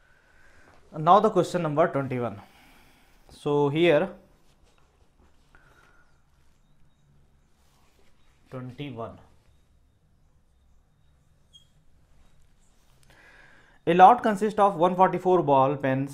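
A man speaks calmly and clearly, close to a microphone, in short bursts.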